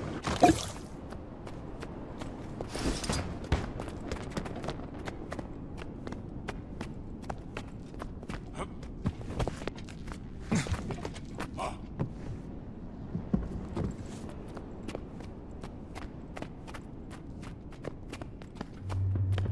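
Footsteps of a game character tap steadily across hard floors.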